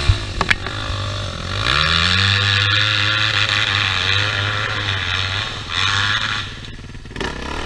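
A dirt bike engine revs hard and fades into the distance.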